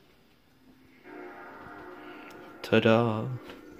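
A game console's startup chime plays from a television speaker.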